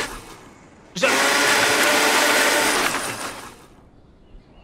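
A blender whirs loudly, then stops.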